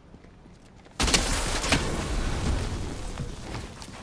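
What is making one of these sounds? A loud blast bursts and crackles in a video game.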